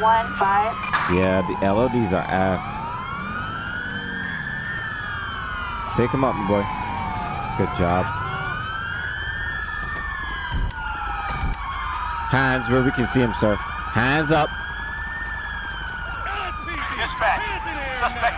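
A police siren wails steadily, rising and falling.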